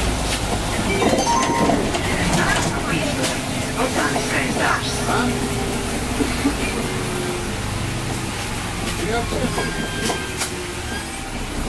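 The bus rattles and clatters over the road.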